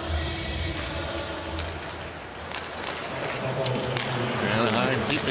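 Skate blades scrape across ice.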